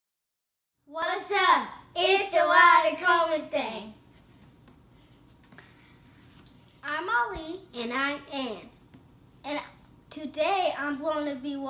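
Two young girls speak excitedly, close by.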